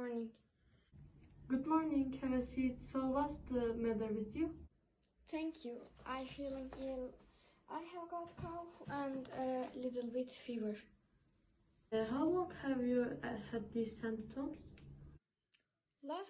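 A young girl speaks calmly through a face mask, close by.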